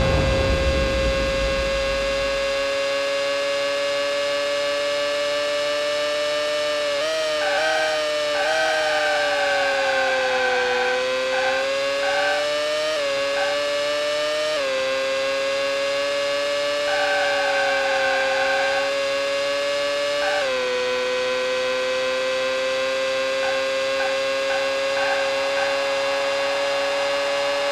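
A racing car engine whines steadily at high revs, dipping and rising as the car slows for corners and speeds up again.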